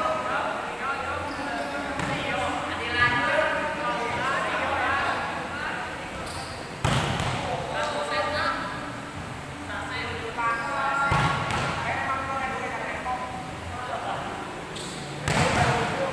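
A ball is kicked with sharp thuds, echoing in a large hall.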